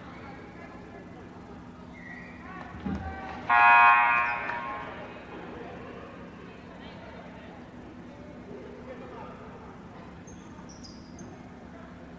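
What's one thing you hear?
Sneakers squeak on a hard court as players move.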